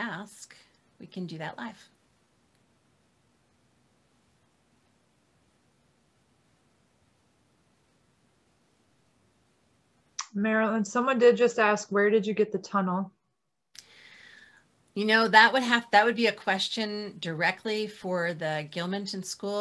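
A middle-aged woman speaks calmly over an online call, close to the microphone.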